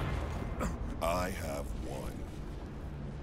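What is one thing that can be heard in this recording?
A deep-voiced man speaks menacingly.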